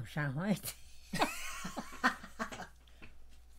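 An elderly woman laughs.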